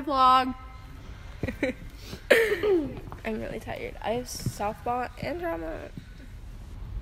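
A young woman talks and laughs close to the microphone.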